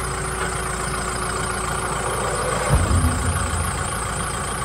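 A tractor climbs onto a metal trailer with a heavy clunk.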